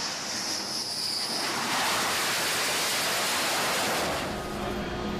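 A jet engine roars loudly as a fighter jet lands.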